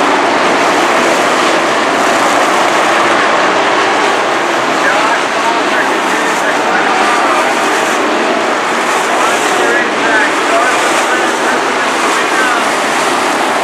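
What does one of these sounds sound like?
Several race car engines roar loudly and steadily as the cars speed past.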